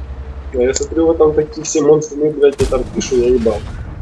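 A tank gun fires with a sharp bang.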